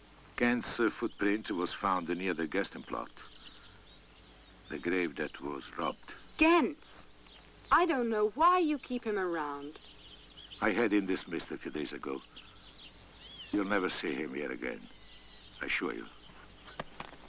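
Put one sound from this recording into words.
A man speaks in a firm, measured voice nearby.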